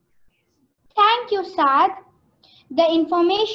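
A young girl speaks with animation through a microphone.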